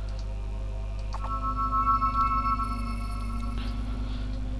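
A magical shimmering hum rises as a teleport spell glows.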